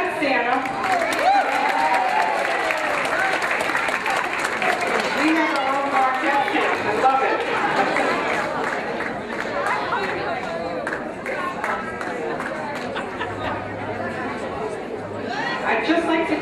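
Many elderly men and women chatter all around in a large room.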